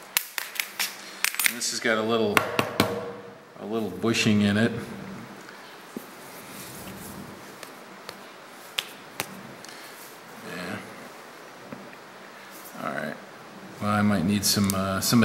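Metal parts click and clink as they are handled.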